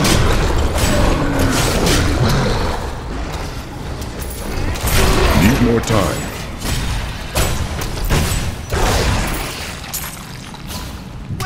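Heavy blows thud and slash in quick succession.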